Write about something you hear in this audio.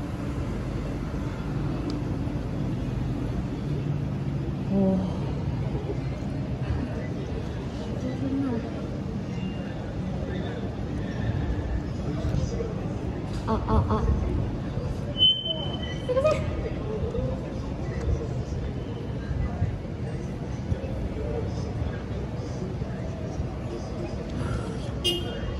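Street traffic hums in the background.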